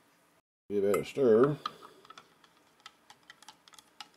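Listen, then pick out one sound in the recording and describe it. A spoon clinks and scrapes against a mug while stirring.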